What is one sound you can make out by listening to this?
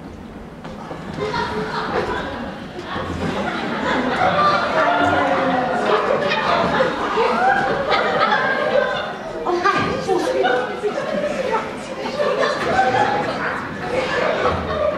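A second woman answers with animation in an echoing hall.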